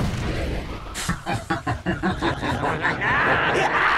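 Characters' weapons clash and strike.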